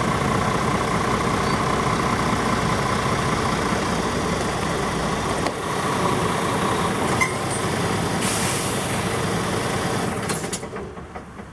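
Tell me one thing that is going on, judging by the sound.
A truck engine rumbles as the truck rolls slowly forward.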